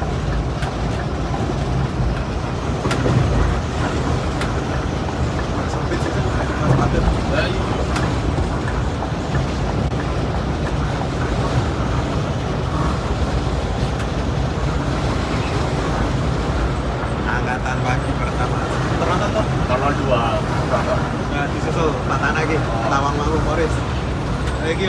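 Tyres rumble on a road surface.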